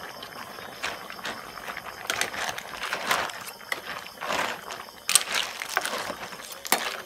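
A metal spoon scrapes and clinks against a pot while stirring leaves.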